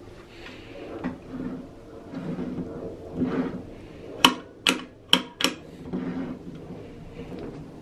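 A metal lamp handle clicks and rattles.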